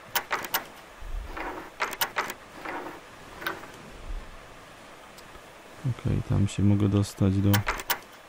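A metal pick clicks and scrapes inside a lock.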